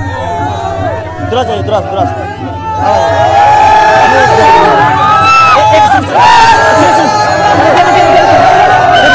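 A crowd of boys and young men shout and cheer excitedly close by, growing louder.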